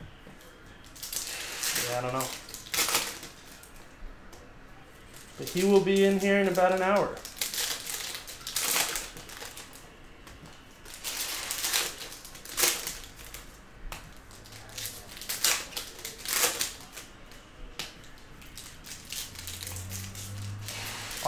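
Trading cards and foil packs rustle and crinkle as hands handle them.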